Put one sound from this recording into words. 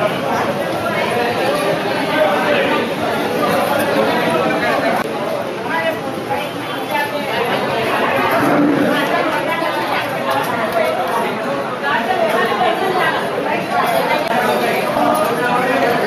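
Many men and women chatter and murmur at once in a busy crowd.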